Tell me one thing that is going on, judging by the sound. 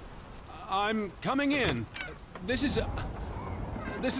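A door handle turns and a door creaks open.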